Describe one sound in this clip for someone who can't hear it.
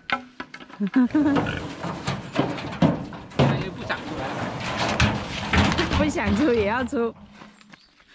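A pig squeals loudly.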